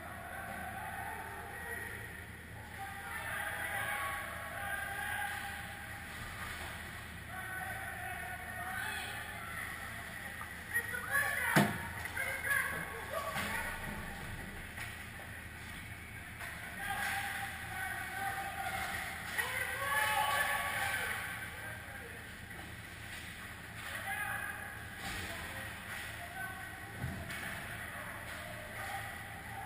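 Young players shout and call out in a large echoing rink.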